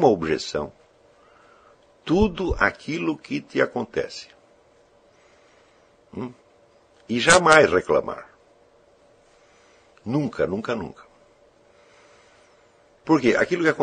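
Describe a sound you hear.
An elderly man speaks calmly and deliberately, close by, with pauses between phrases.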